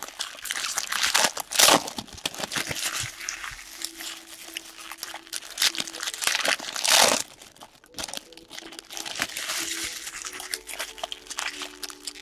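Plastic wrappers crinkle and rustle as hands tear open card packs.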